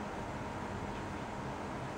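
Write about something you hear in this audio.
A cat laps water from a bowl.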